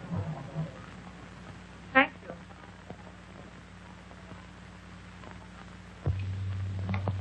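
High heels click on a hard floor as a woman walks.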